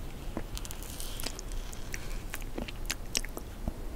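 A wooden spoon scrapes into soft ice cream cake.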